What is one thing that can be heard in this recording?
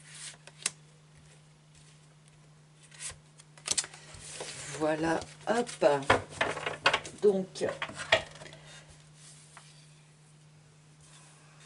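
Cards slide and tap softly as they are handled.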